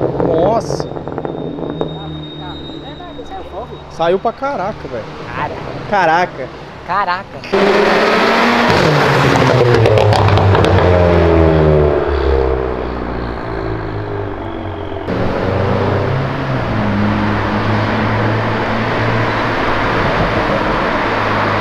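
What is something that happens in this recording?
A car engine revs and roars loudly.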